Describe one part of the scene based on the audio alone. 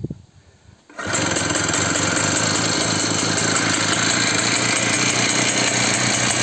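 A small engine starts up and runs loudly with a rapid, steady chugging.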